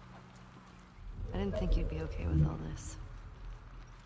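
A young woman speaks softly and hesitantly.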